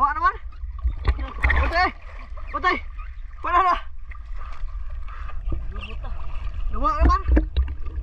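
Water splashes and sloshes around swimmers.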